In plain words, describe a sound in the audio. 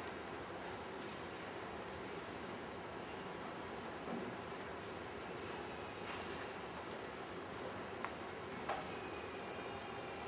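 A man speaks softly in a large echoing hall.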